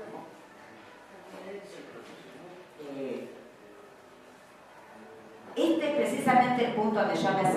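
A woman speaks calmly into a microphone, heard through loudspeakers in a hall.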